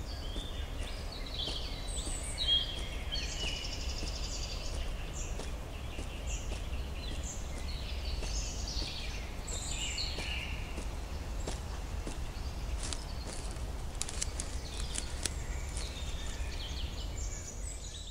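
A man's footsteps crunch on dry grass and leaf litter.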